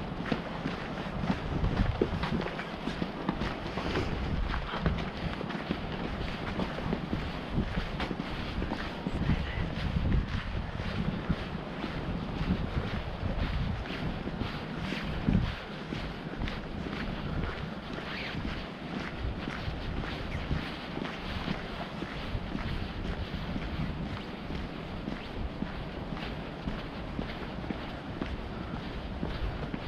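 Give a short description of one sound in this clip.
Footsteps crunch steadily on a dirt path outdoors.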